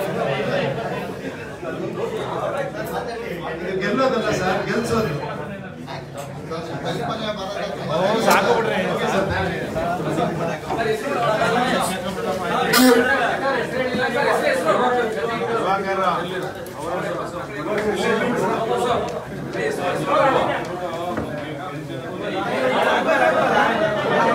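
A crowd of men talk and shout over one another in an echoing room.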